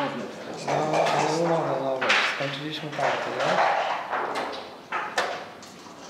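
Dice clatter onto a wooden board.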